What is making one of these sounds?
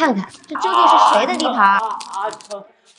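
A young woman cries out in pain.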